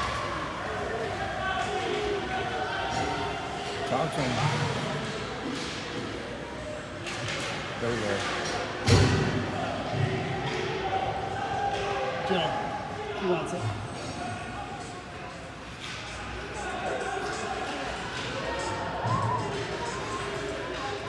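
Spectators shout and call out in an echoing indoor rink.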